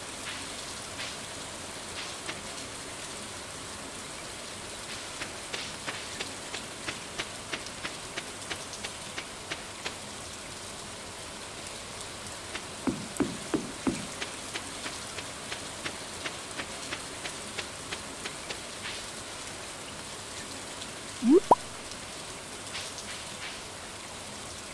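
Rain falls steadily with a soft hiss.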